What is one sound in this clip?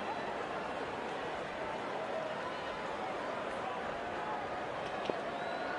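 A stadium crowd murmurs and cheers steadily.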